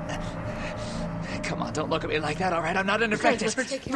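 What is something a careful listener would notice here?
A young man speaks strainedly, close by.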